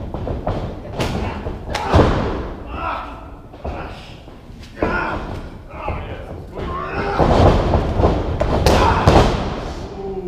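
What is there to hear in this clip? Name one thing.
Wrestlers' bodies thud heavily onto a ring mat in a large echoing room.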